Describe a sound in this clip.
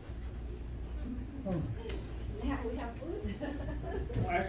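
A woman speaks calmly to a group, a little way off.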